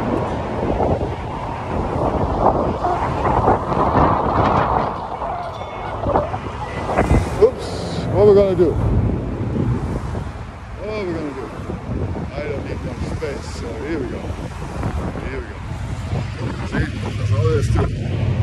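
An older man talks close to the microphone.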